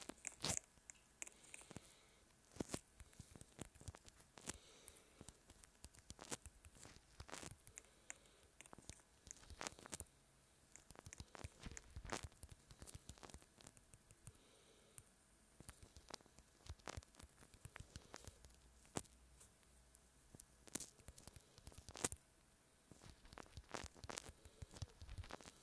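Taps on a phone's touch keyboard click in quick, uneven bursts.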